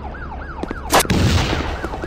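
A rocket launcher fires with a sharp blast.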